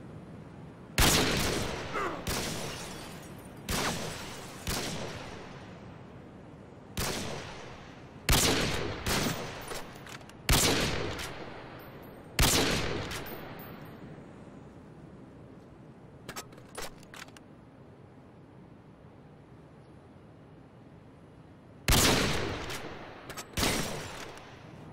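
A bolt-action sniper rifle fires single loud shots.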